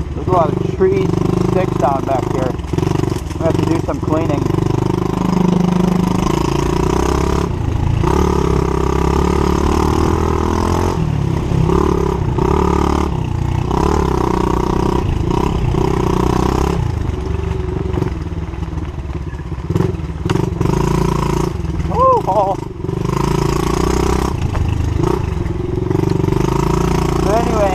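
A dirt bike engine revs and roars up close.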